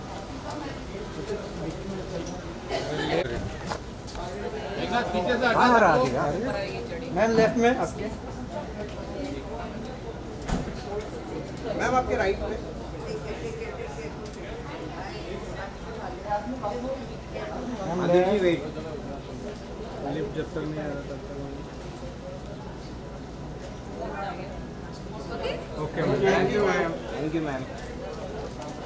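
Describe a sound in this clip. A crowd of men and women call out and chatter nearby.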